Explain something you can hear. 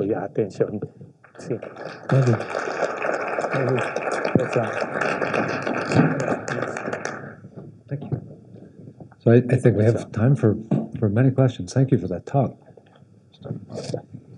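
An older man speaks calmly through a microphone in a large, echoing hall.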